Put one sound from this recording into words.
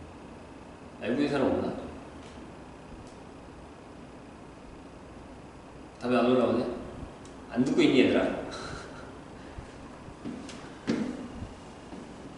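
A man speaks in short bursts with pauses, in a room with a slight echo.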